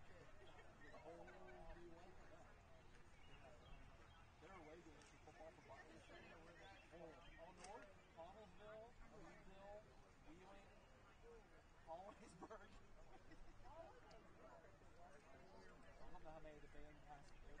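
A crowd of men and women chatter outdoors in the distance.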